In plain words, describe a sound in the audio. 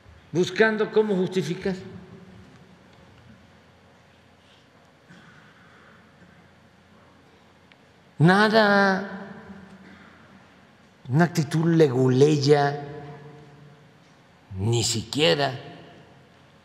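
An elderly man speaks calmly into a microphone in a large echoing hall, in short bursts with pauses.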